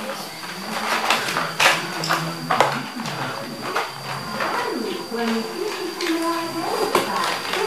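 Plastic toys clatter and knock together.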